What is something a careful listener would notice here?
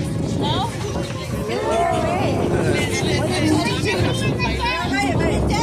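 Several adults and children talk and chatter close by, outdoors.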